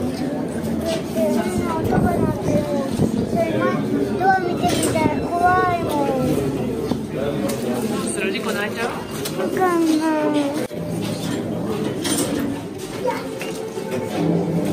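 A young girl talks and exclaims close by.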